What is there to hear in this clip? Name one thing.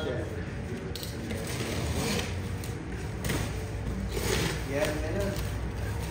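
A plastic wrap rustles and tears.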